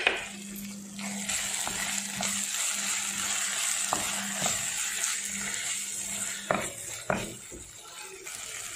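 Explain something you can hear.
A spoon scrapes and clicks against a bowl while stirring.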